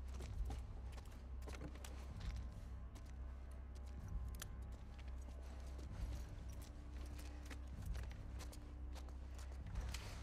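Footsteps pad softly on a wooden floor.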